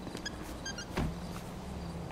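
A car boot slams shut.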